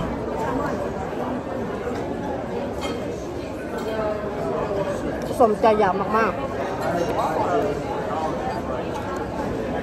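A young woman chews and slurps food.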